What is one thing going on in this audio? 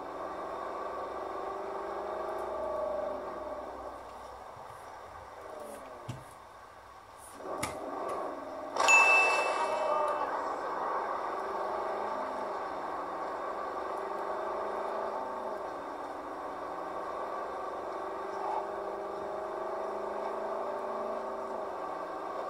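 A car engine hums steadily as the car drives.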